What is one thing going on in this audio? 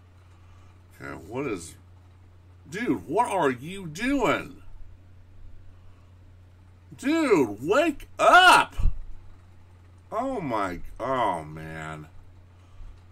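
A man talks with animation through a microphone, close by.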